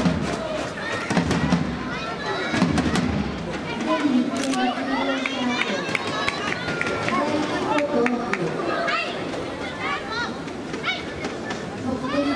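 Shoes squeak sharply on the court floor.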